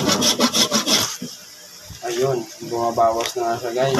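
A knife taps and scrapes against a hard salt crust.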